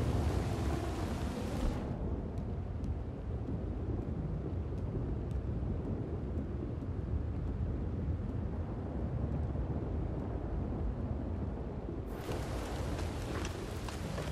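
Wind blows steadily outdoors, turning muffled for a while in the middle.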